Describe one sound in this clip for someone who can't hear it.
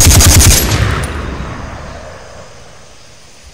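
A gun fires a loud burst that rings out and fades away.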